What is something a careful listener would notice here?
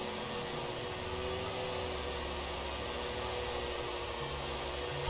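A leaf blower drones nearby.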